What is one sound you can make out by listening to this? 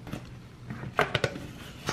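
A plastic lid snaps onto a container with a click.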